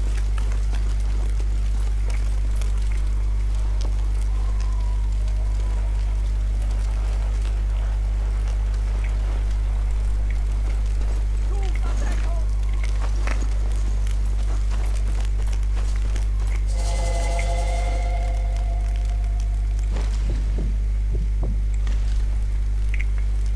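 Footsteps crunch softly on dirt and grass.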